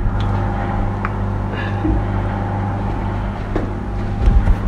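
A cupboard door creaks open and bumps shut.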